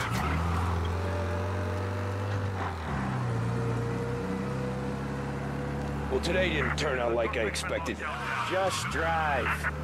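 An old car engine hums steadily as it drives.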